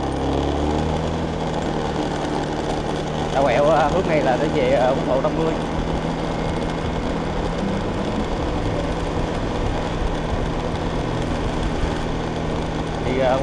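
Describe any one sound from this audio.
A motorbike engine hums steadily while riding.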